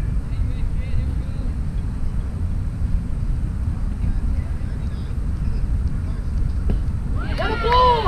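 Wind blows steadily across the microphone outdoors.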